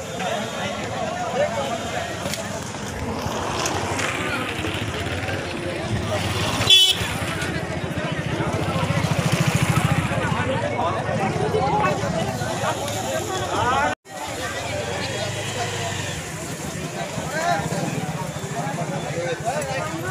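A crowd of men and women talk and call out nearby outdoors.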